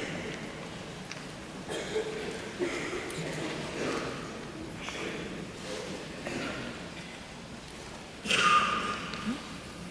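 An orchestra plays in a large echoing hall.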